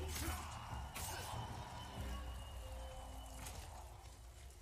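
Swords clash and ring sharply.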